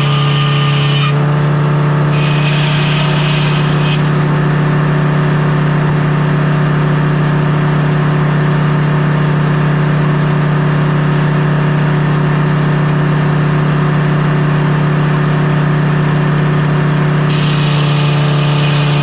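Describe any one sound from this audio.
A sawmill engine drones loudly and steadily.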